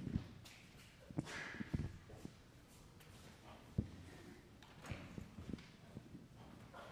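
Audience members shift in their seats with soft knocks and rustles in a large hall.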